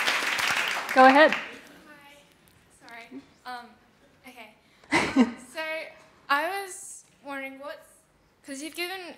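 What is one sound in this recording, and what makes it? A young woman speaks into a microphone at a standing mic in a large hall.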